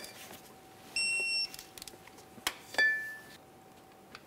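A digital torque wrench beeps as a bolt reaches its set torque.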